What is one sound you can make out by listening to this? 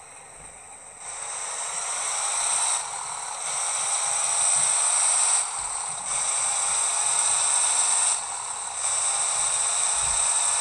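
A truck engine hums and revs up as the truck speeds up, with brief dips as the gears change.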